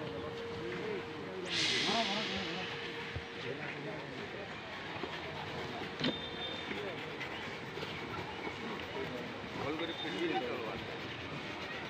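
A large sheet of fabric rustles as it is handled.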